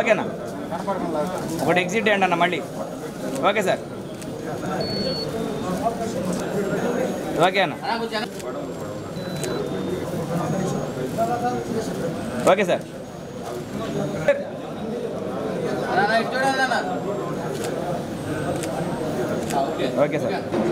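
A crowd of men chatter close by in a room.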